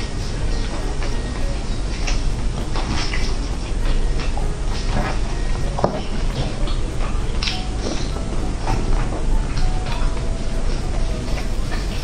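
Roasted meat tears apart under gloved fingers.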